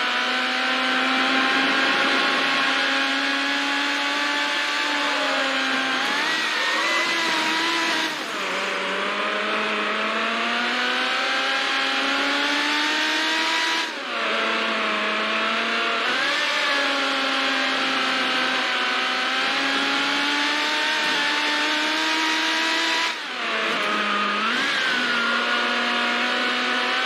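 A race car engine roars at high revs, dropping briefly with each gear shift and climbing again.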